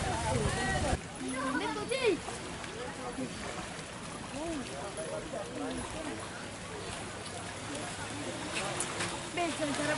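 Horses' hooves splash through shallow water.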